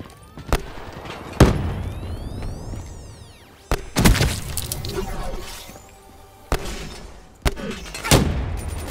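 Gunshots ring out in sharp, loud bursts with echoing tails.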